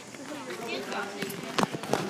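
Footsteps walk on a paved path.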